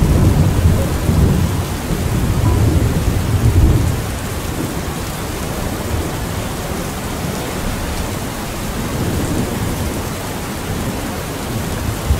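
A fire roars with a low, steady rumble.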